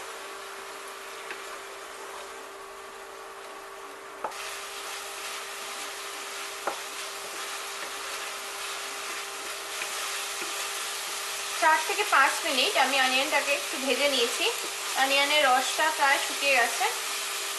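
A wooden spoon scrapes and taps against a pan.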